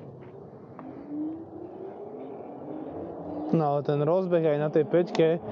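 Bike tyres hum on smooth tarmac.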